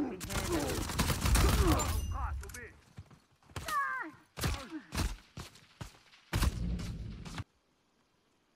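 Heavy blows land in quick succession.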